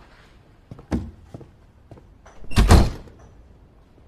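A door thuds shut.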